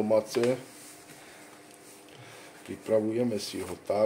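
A plastic bag crinkles as flour is shaken out.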